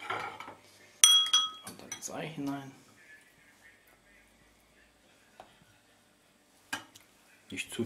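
A fork clinks against a ceramic bowl.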